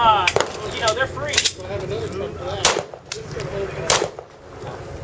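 Pistol shots crack sharply outdoors, one at a time.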